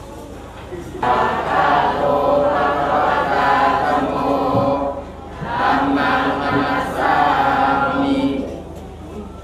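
An elderly man chants steadily into a microphone over a loudspeaker, with short pauses.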